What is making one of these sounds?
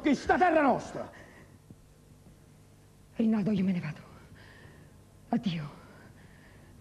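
A woman sings out with feeling.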